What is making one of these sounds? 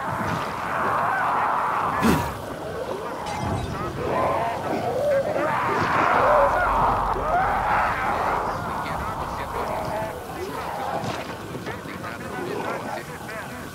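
Burning creatures shriek and groan.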